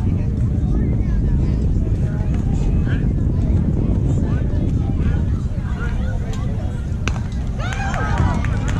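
Young girls call out from a distance across an open field.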